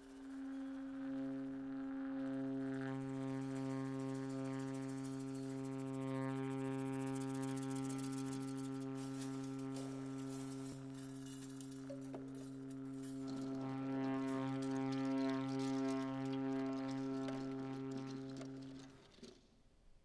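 A tuba holds a low, steady note.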